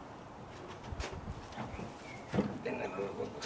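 Metal spit fittings clink against a rod.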